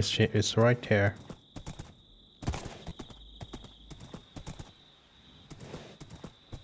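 Hooves clop steadily as a horse trots along.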